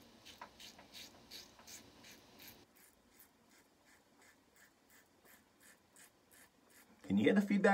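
A razor scrapes across stubble in quick, steady strokes.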